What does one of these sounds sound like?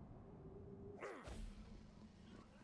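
A heavy gun fires a short burst.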